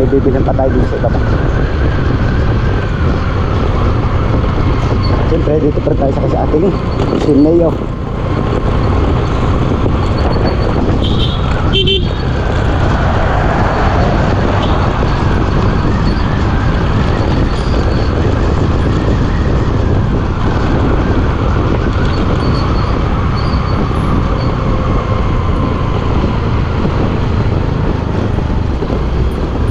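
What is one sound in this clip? A motorcycle engine hums steadily at close range.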